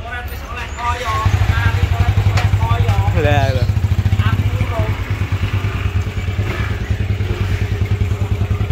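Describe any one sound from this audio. A motorcycle engine starts and idles with a loud, rapid throbbing.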